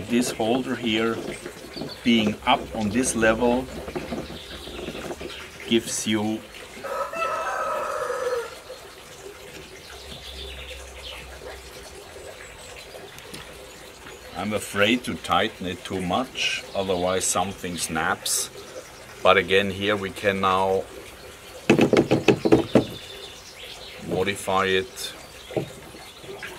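A metal clamp clicks and scrapes against a wooden frame.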